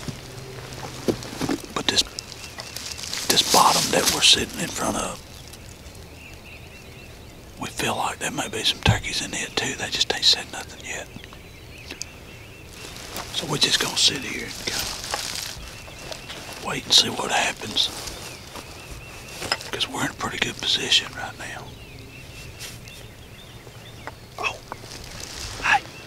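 A man speaks quietly and calmly close by, in bursts with pauses.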